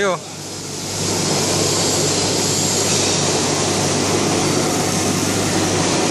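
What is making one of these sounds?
A machine roars steadily.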